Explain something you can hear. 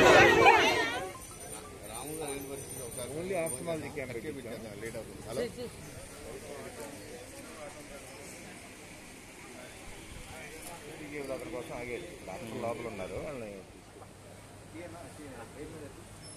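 Men and women talk quietly in the background.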